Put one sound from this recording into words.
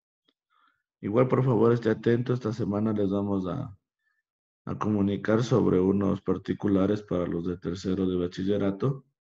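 A young person speaks calmly over an online call.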